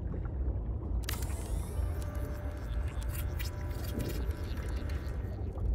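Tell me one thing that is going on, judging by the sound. A game building tool hums and crackles with electronic zaps.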